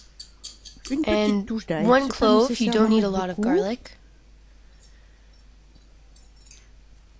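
Kitchen scissors snip over a dish.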